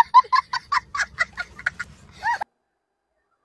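A young boy laughs loudly in bursts, close by.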